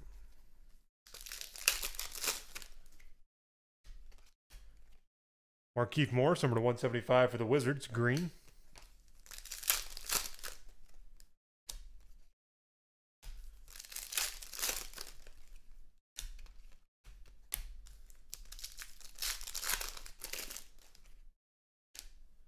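Foil wrappers crinkle and rustle as packs are torn open.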